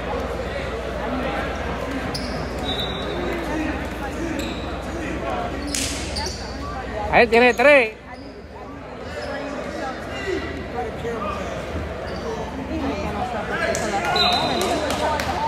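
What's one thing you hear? A crowd chatters and calls out in a large, echoing gym.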